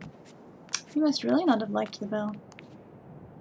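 A young woman speaks briefly and with animation into a close microphone.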